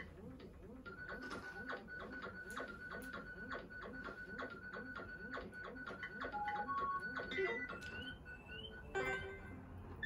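Cheerful video game menu music plays from a television.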